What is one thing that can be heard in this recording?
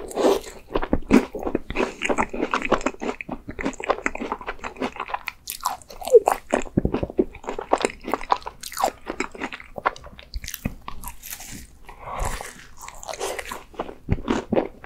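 A young man chews and smacks his lips wetly close to a microphone.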